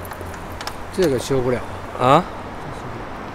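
Keys jingle on a ring.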